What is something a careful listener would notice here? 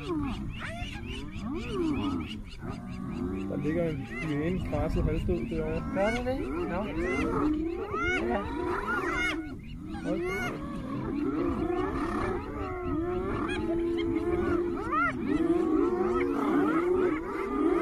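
Hyenas cackle, giggle and whoop all around.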